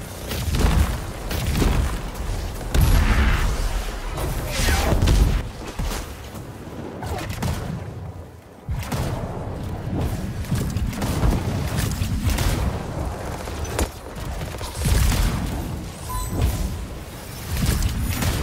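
Gunfire and energy blasts crackle.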